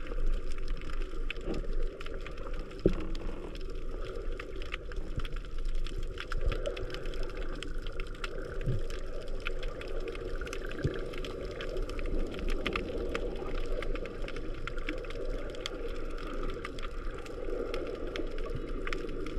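A low rumble of water churns throughout.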